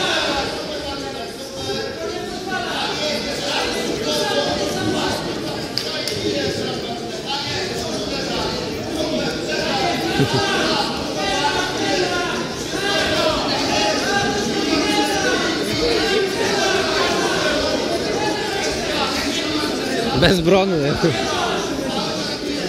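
A crowd of men and women shouts and cheers loudly in a large echoing hall.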